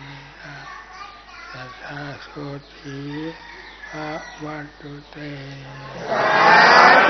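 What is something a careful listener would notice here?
An elderly man chants slowly in a low voice through a microphone.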